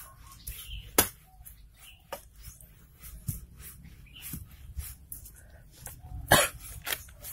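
A blade chops into a firm root with sharp knocks.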